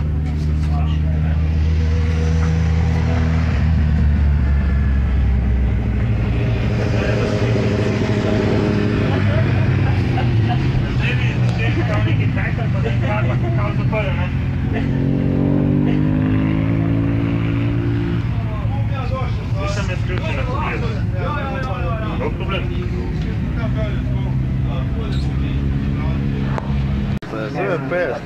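A motorcycle engine runs loudly nearby, revving up and down.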